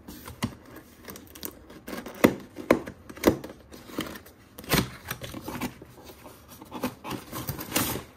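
Cardboard flaps are torn open with sharp rips and knocks.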